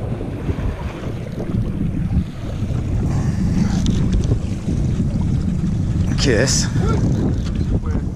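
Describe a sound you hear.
Waves slap against a small boat's hull.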